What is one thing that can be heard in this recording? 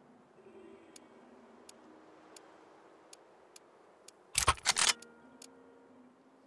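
Menu clicks tick sharply now and then.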